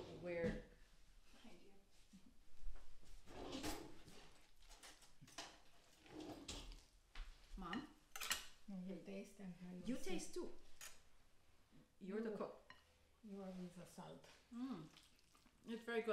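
An older woman talks calmly and close by.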